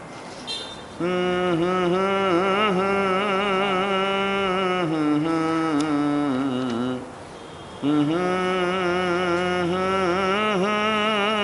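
A man sings a slow, wavering chant into a microphone.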